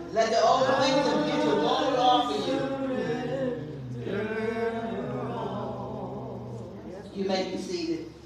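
A woman sings with feeling into a microphone, in a room with some echo.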